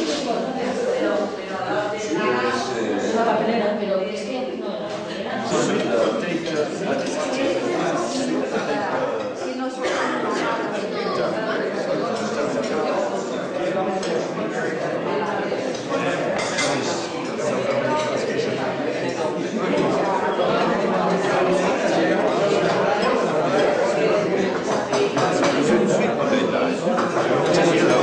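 Many men and women chatter at tables, in a room that sounds busy.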